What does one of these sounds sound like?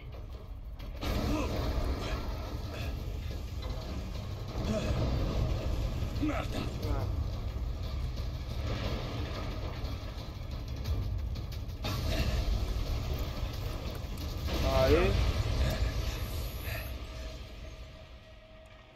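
A deep rumbling roar with blasts and explosions.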